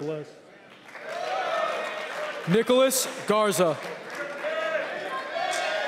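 A crowd of young men cheers and shouts.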